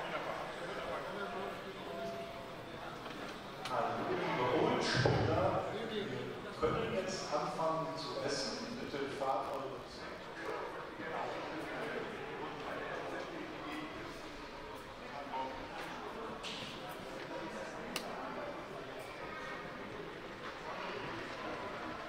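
Men and women chat indoors nearby.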